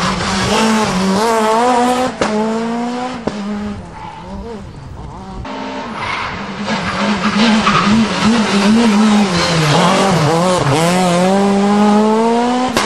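A rally car engine roars and revs hard, climbing in pitch and dropping with each gear change.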